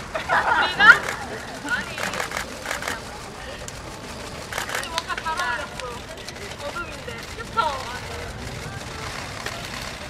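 Young women laugh close by.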